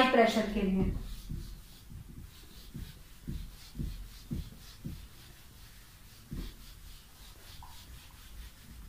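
A marker rubs and taps against a whiteboard.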